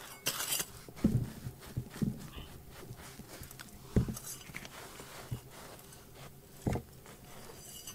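Fingers brush and rake through gritty soil.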